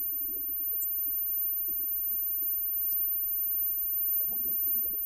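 A live rock band plays electric guitars and drums loudly.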